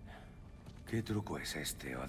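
A man speaks quietly and gravely, close by.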